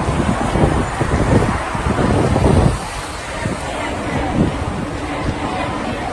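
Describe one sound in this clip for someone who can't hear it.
A large crowd outdoors shouts and chants loudly.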